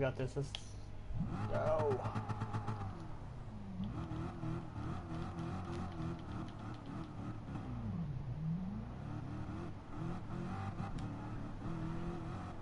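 A racing car engine revs loudly, rising and falling as gears shift.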